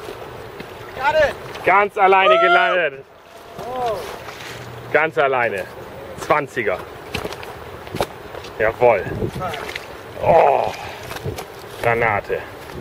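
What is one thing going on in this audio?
A man talks excitedly nearby.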